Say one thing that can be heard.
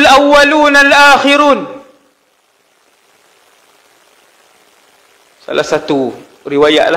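A man speaks with animation into a headset microphone, pausing briefly.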